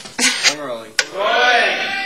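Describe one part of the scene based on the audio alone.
A clapperboard snaps shut with a sharp clack.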